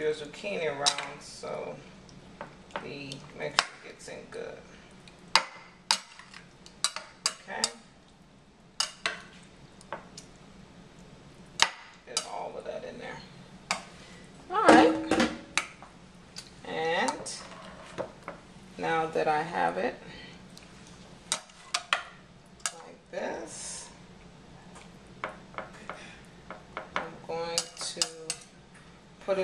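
A metal fork clinks and scrapes against a glass dish.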